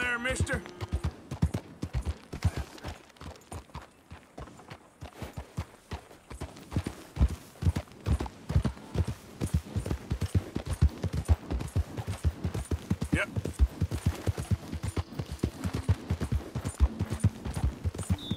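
Horse hooves thud steadily on a dirt track.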